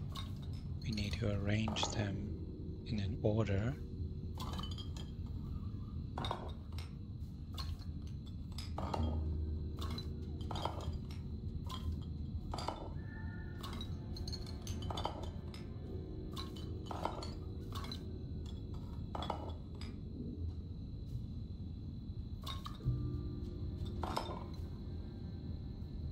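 Glass bottles clink and knock against a wooden tray as they are moved.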